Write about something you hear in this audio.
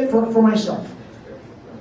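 An older man speaks briefly into a microphone.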